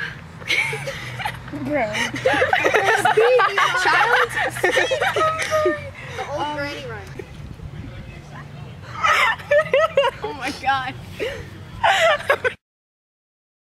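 Teenage girls laugh loudly together.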